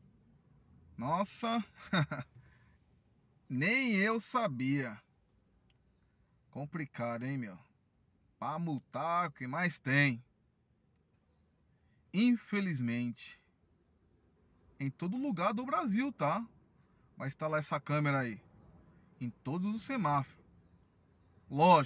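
A man talks calmly and close by, in short phrases with pauses.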